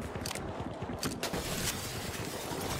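Glass shatters.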